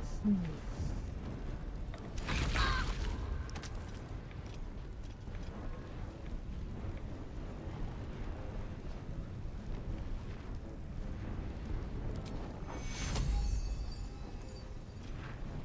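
Embers crackle and hiss steadily.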